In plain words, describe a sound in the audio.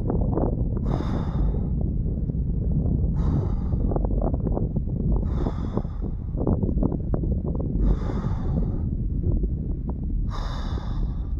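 A man breathes hard in deep, rhythmic gasps close by.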